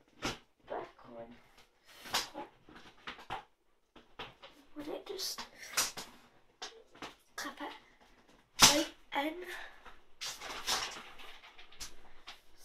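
A young woman speaks close by in short, lively bursts.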